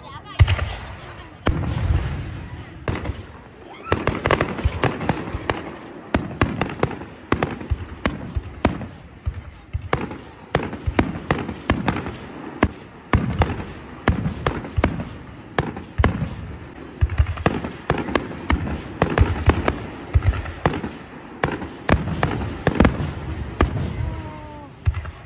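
Fireworks boom and bang loudly, one after another.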